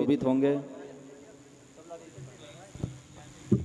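A crowd of women chatters softly nearby.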